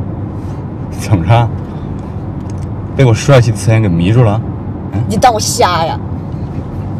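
A young man speaks teasingly and close by.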